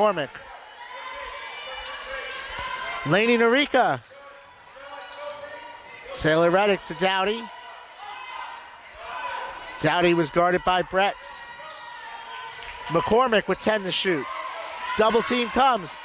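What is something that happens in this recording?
A crowd murmurs in an echoing gym.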